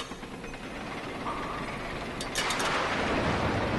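A crate crashes onto the ground.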